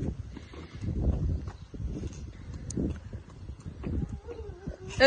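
Small footsteps patter quickly on pavement.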